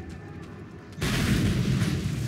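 An explosion booms with a roaring blast.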